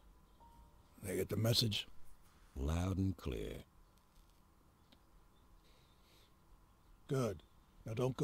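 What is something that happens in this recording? A man speaks quietly and calmly close by.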